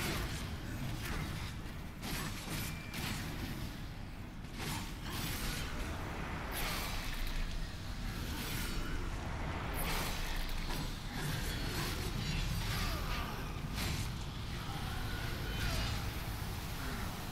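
Game blades clang and slash in rapid combat.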